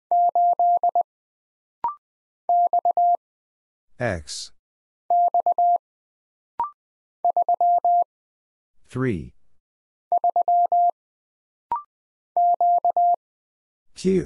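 A telegraph key taps out quick bursts of steady beeping Morse code.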